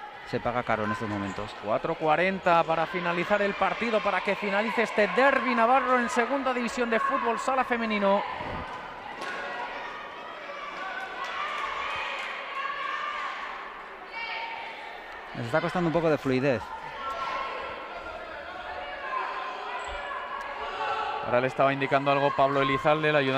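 Sneakers squeak on an indoor court.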